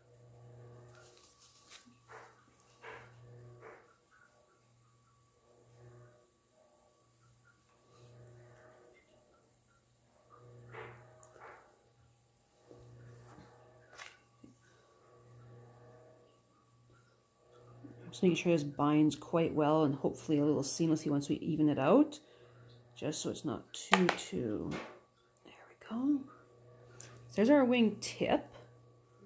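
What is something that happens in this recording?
Fingers rub and smooth soft clay quietly.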